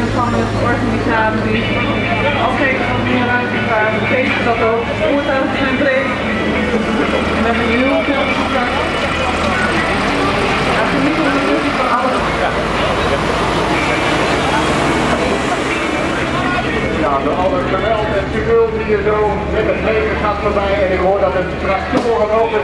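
Truck engines rumble as they drive slowly past.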